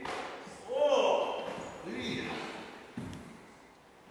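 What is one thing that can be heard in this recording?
A body thuds onto a wooden floor.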